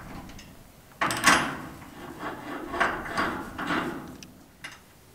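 A wrench clanks against metal fittings.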